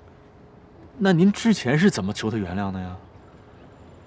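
A younger man speaks nearby calmly, asking a question.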